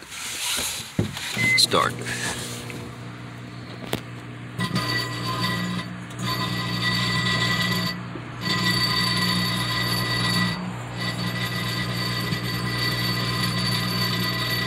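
A microwave oven hums steadily as it runs.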